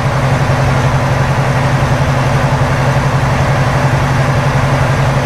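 Tyres roll on the road with a steady rush.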